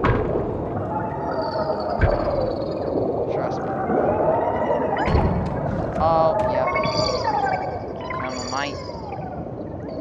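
Small creatures chirp and squeak.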